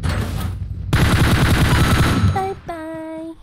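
Gunfire rattles in a quick burst.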